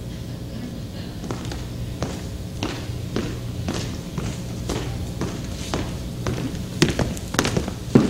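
High heels click on a stage floor.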